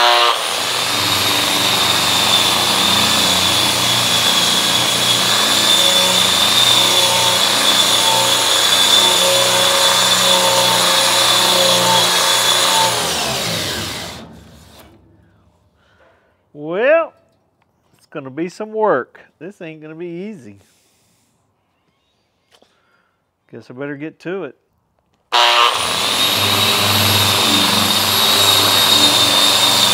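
An electric grinder whines loudly, winds down and stops, then starts again.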